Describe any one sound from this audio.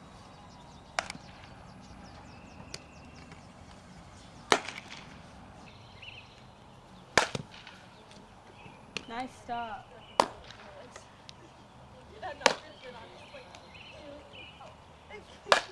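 A softball smacks sharply into a leather glove, several times.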